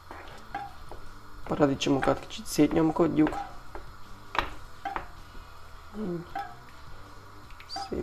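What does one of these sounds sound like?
A wooden spoon stirs and scrapes through thick sauce in a pan.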